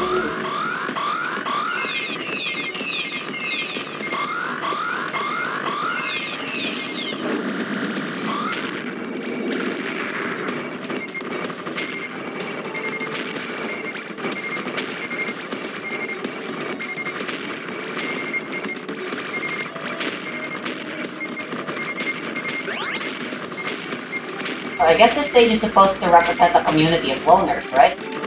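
Rapid game shots fire in quick bursts.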